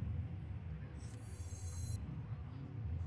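A soft, faint chime sounds briefly as a card is picked up.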